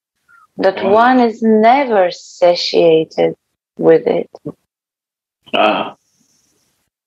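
A young woman chants melodically over an online call.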